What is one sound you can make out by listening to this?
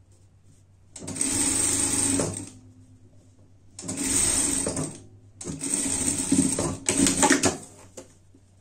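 A sewing machine runs in short, fast bursts of stitching.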